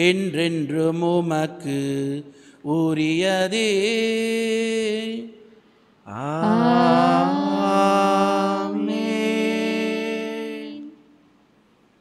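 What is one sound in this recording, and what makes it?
A man chants in a sustained singing voice through a microphone, with a slight echo.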